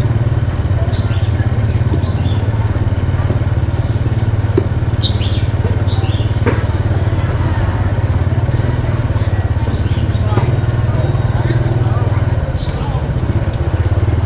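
A motor scooter engine hums steadily close by.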